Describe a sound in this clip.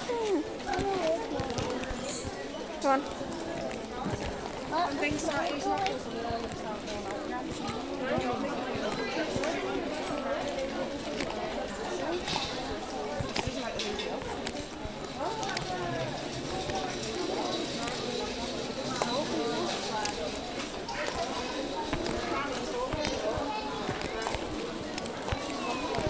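A crowd of shoppers murmurs and chatters nearby.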